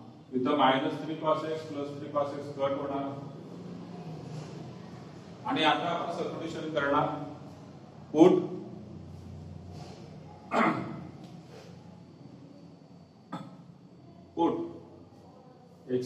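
A man speaks calmly and clearly nearby, in short bursts with pauses.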